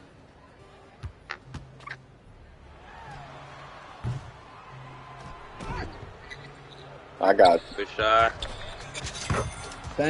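Sneakers squeak sharply.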